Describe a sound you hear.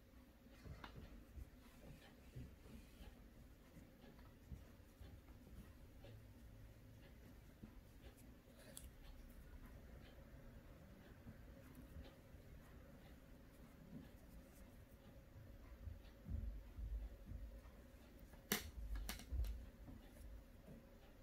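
Hands rustle and handle soft yarn close by.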